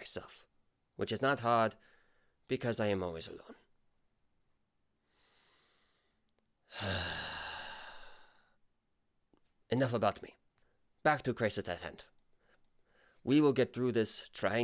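A man speaks in a character voice close to the microphone.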